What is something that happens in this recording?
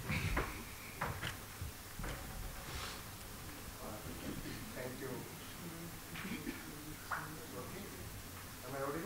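An older man speaks at a lectern through a microphone and loudspeakers.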